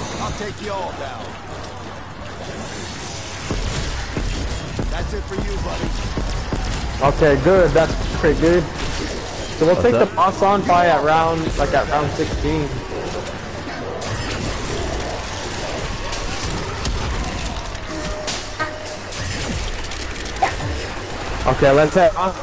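Guns fire rapidly in a game.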